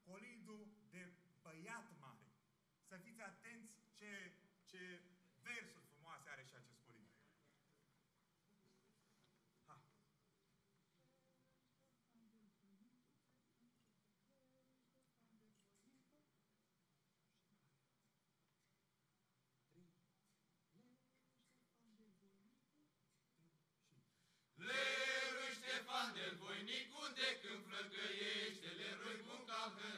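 A men's choir sings together loudly through microphones.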